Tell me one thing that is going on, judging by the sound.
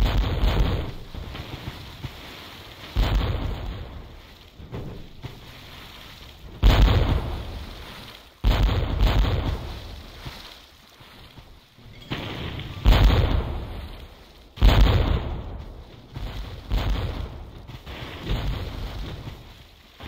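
Cannons boom again and again.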